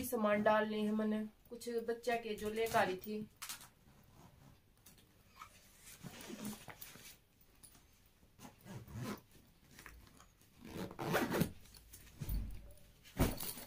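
Fabric rustles as a backpack is handled.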